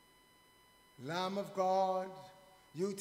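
A man sings or chants calmly into a microphone in an echoing room.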